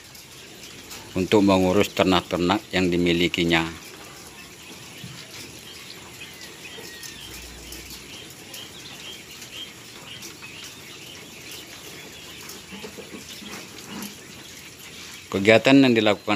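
Caged birds chirp softly throughout.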